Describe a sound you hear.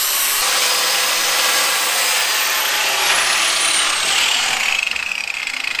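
An angle grinder whines loudly and winds down.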